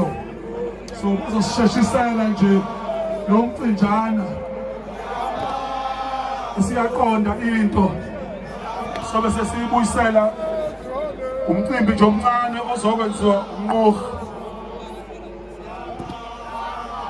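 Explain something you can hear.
A large group of men chant and sing together loudly outdoors.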